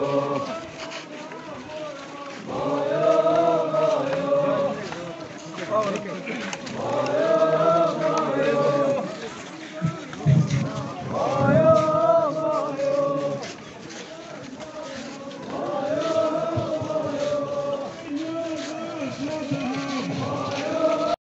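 A large crowd of men chants together in loud, rhythmic phrases outdoors.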